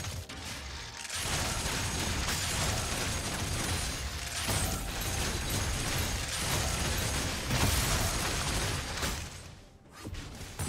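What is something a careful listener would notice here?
Game spell effects crackle and blast in a busy fight.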